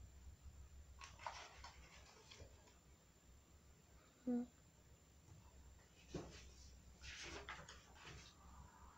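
Pages of a book rustle and turn.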